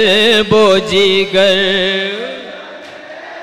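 A young man sings a mournful chant loudly through a microphone, with an echo trailing after.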